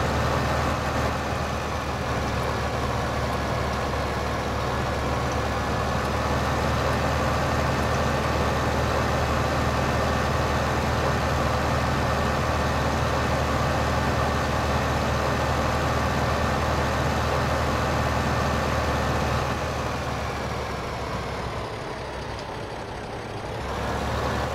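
A tractor engine hums steadily as the tractor drives along, then drops lower as it slows down.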